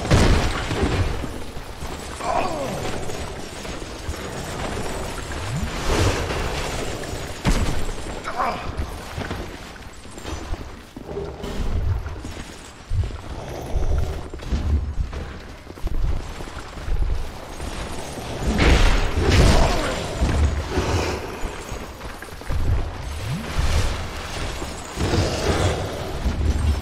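Armoured footsteps crunch over gravel.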